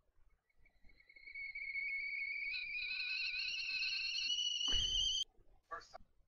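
A shrill screech slowly rises in pitch and cuts off abruptly.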